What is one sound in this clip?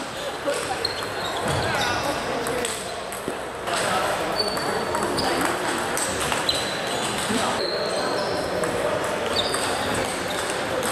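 Squeaky shoes chirp on a hard floor.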